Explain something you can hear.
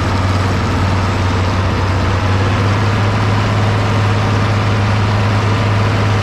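A tractor's diesel engine idles with a steady, low rumble close by.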